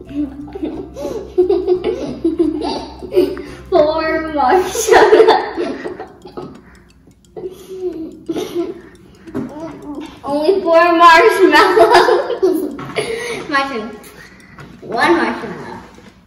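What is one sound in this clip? Young girls talk and giggle close by.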